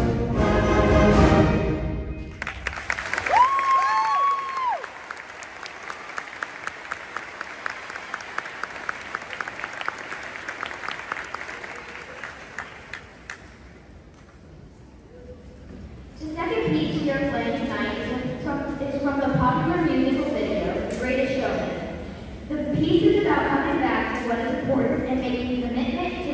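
A concert band plays in a large echoing hall.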